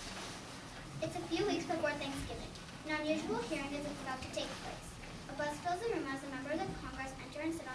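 A girl reads aloud into a microphone.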